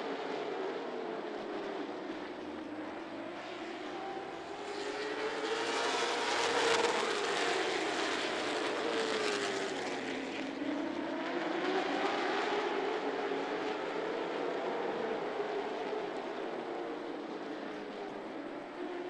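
A pack of race car engines roars loudly, rising and falling in pitch as the cars pass.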